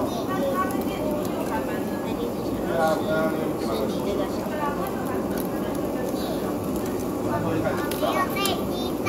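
Meat sizzles on a wire grill over charcoal.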